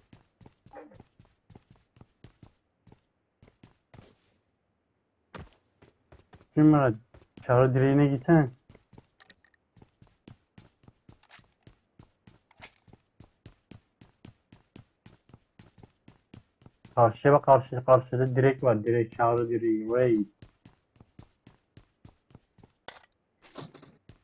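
Footsteps run quickly and steadily over hard ground.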